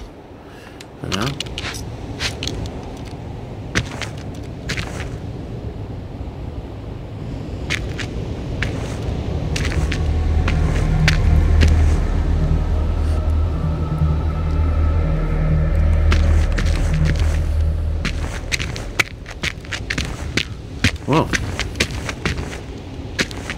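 Footsteps crunch over frozen ground at a steady walking pace.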